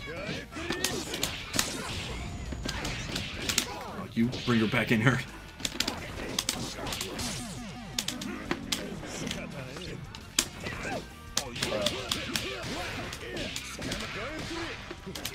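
Punches and kicks land with sharp smacks, again and again.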